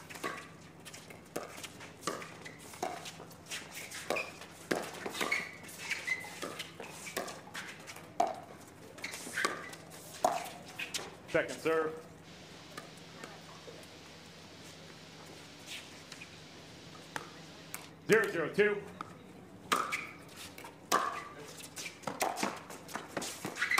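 Paddles pop sharply against a plastic ball in a quick rally, outdoors.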